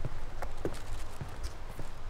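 A plastic bag rustles as it swings.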